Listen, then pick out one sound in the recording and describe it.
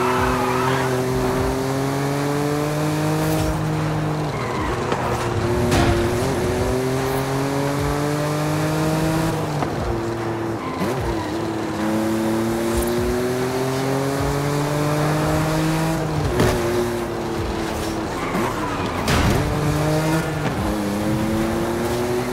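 A sports car engine revs up and down through the gears.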